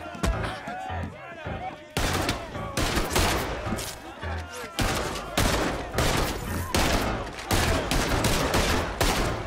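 Blows thud in a scuffle on wooden boards.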